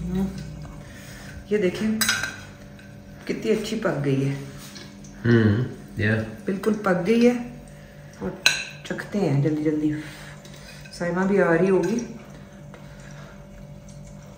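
A fork scrapes and clinks on a glass plate.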